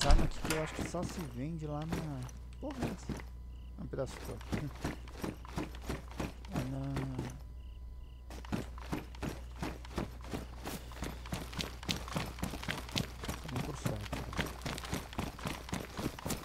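Footsteps tap steadily on a hard floor and then on a road.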